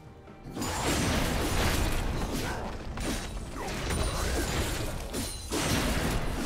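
Video game combat effects clash, with spell blasts and weapon hits.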